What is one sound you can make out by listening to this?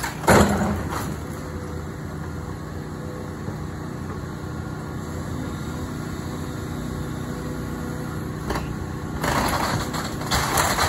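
An excavator engine rumbles steadily.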